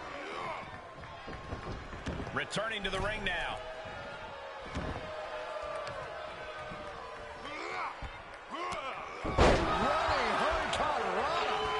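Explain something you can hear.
Bodies slam down hard with heavy thuds.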